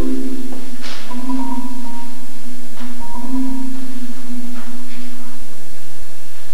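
A marimba plays ringing notes.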